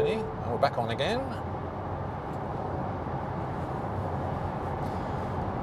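Tyres roar on tarmac inside an electric car cruising at motorway speed.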